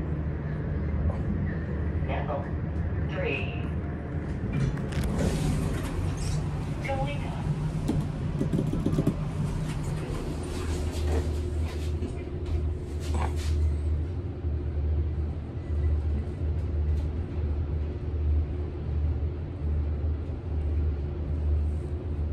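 An elevator hums and rumbles steadily as it moves.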